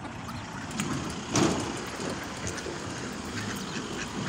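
Cars pass on a nearby road.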